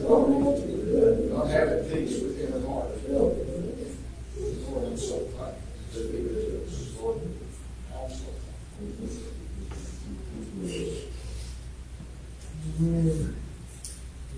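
A man speaks steadily through a microphone in an echoing room.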